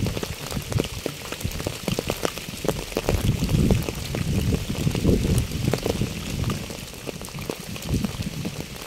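Raindrops patter and drip onto a wet path outdoors.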